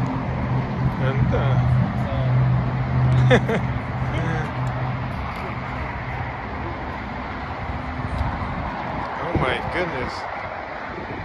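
Young men talk casually nearby outdoors.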